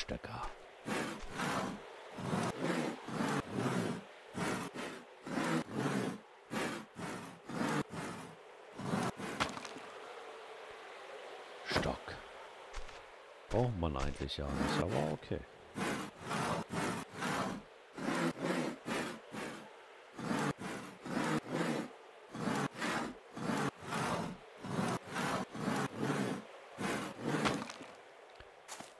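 A hand saw cuts through wood in quick, steady strokes.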